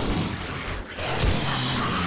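A gun fires loud single shots.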